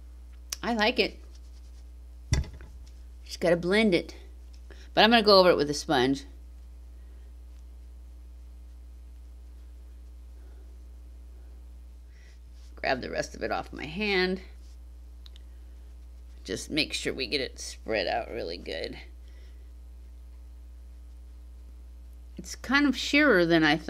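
An elderly woman talks calmly and close by, in short bursts with pauses.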